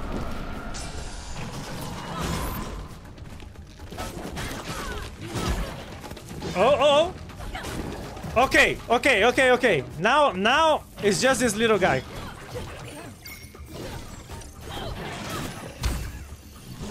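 Game swords clash and magic blasts crackle.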